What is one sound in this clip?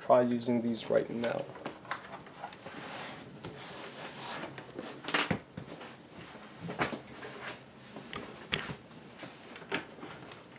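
A laptop knocks and scrapes softly against a desk as it is moved.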